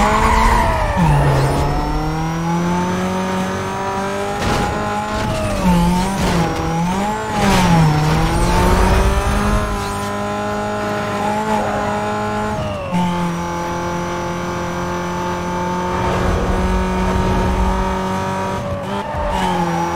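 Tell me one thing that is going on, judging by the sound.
A sports car engine climbs and drops in pitch as it shifts up through the gears.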